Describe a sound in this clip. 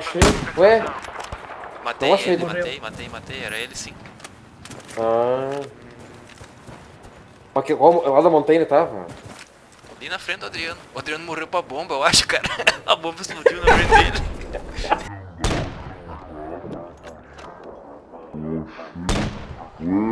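A rifle fires with a sharp, loud crack.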